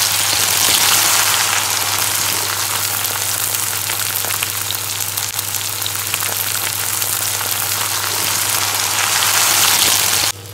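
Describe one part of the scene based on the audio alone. A wooden spatula scrapes and stirs food in a pan.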